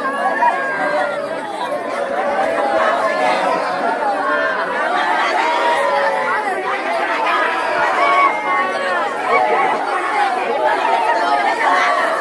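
Several women wail and cry loudly close by.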